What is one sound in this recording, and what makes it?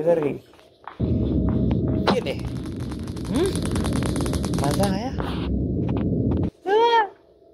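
A stun gun crackles and buzzes loudly with electricity.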